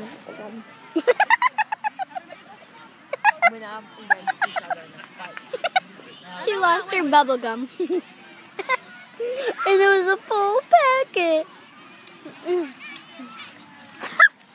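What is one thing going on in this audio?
A young girl laughs loudly close by.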